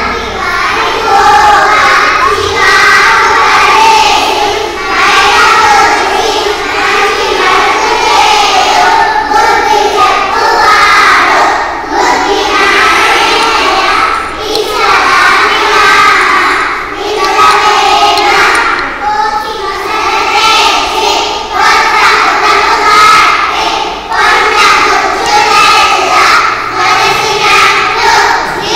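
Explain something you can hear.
A group of young children chant together in unison.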